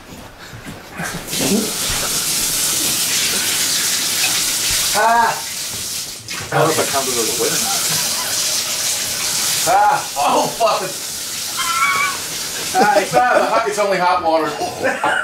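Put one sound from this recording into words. A shower sprays water steadily.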